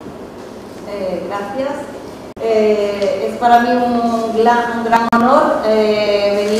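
A young woman speaks into a microphone, heard through loudspeakers in an echoing hall.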